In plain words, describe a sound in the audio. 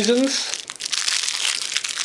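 Foil crinkles as it is unwrapped.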